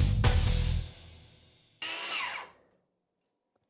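A circular saw whines and slows to a stop.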